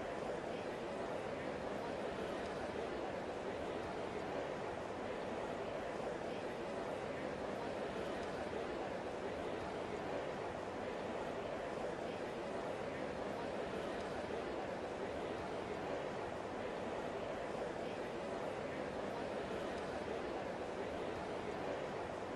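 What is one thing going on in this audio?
A large crowd murmurs steadily in the distance.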